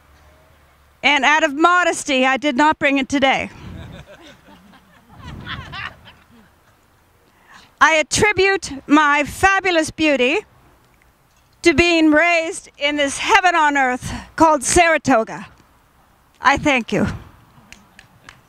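A group of men and women sing together outdoors in short phrases.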